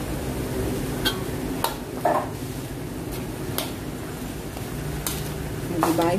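A metal utensil scrapes and knocks against a pan.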